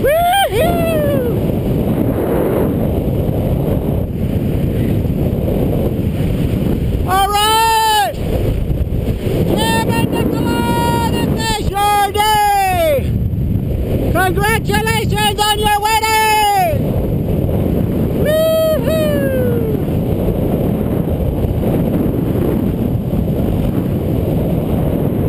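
Wind roars steadily past in open air.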